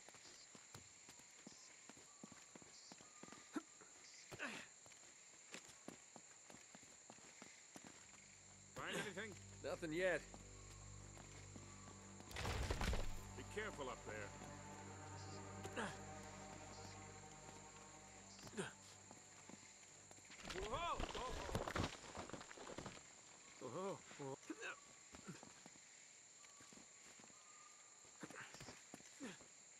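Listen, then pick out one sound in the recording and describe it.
Footsteps scuff and tap on stone.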